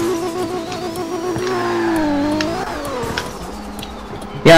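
A car engine hums and revs, rising and falling in pitch.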